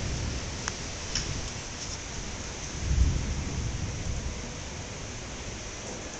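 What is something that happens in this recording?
Thunder rumbles deeply and swells to a low roll.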